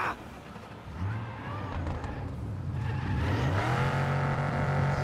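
A car engine starts and revs up steadily.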